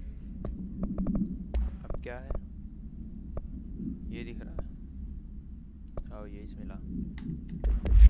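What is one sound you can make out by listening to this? Menu clicks tick sharply.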